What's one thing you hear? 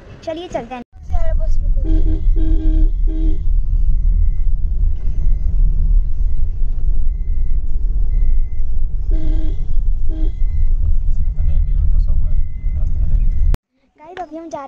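A car engine hums and tyres rumble on the road, heard from inside the car.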